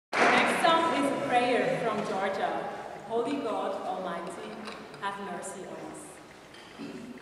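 A choir of young women sings together in an echoing hall.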